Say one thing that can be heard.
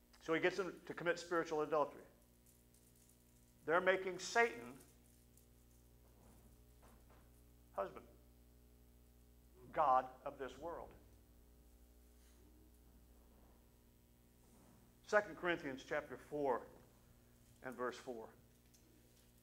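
A middle-aged man speaks calmly into a microphone, with pauses, in a large echoing hall.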